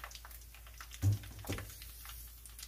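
A metal strainer clinks against a pan.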